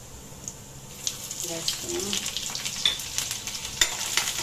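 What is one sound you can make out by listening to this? Water poured into a hot pan hisses loudly.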